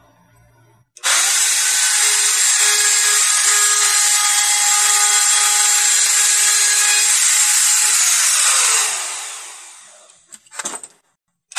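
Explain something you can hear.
A wood router whines loudly and steadily, then winds down.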